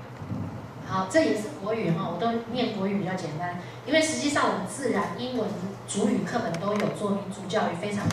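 A woman talks calmly through a microphone and loudspeakers in a large room.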